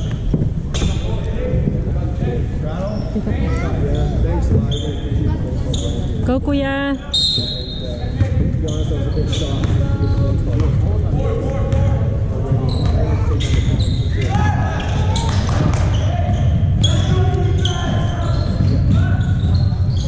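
Spectators chatter in a large echoing gym.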